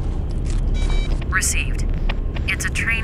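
A mobile phone beeps as its keys are pressed.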